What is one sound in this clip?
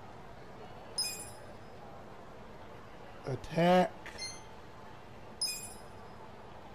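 A short electronic chime rings a few times.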